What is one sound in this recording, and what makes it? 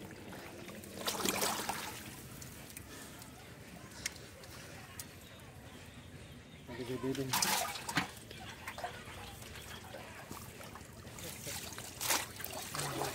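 Water splashes as men wade in shallow water.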